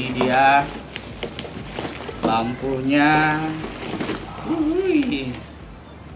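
Plastic wrapping crinkles.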